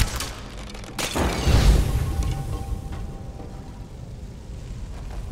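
A fiery explosion bursts with a loud roar and crackles as it dies away.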